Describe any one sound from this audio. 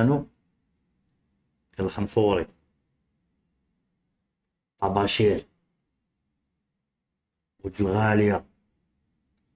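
A man speaks calmly into a close microphone in short phrases with pauses.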